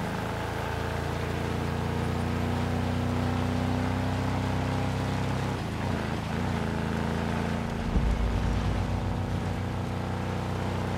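Tyres rumble over a bumpy dirt track.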